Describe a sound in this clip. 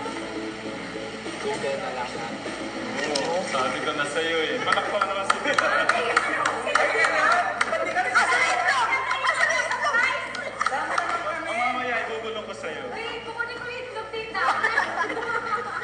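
An elderly woman laughs.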